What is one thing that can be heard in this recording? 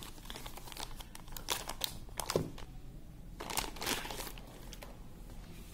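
Plastic wrapping crinkles as hands handle it.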